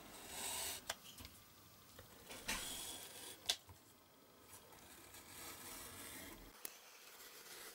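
A knife blade taps lightly on cardboard.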